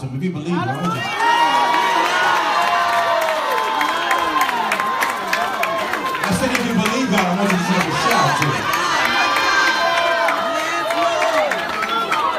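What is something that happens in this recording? A crowd sings loudly together.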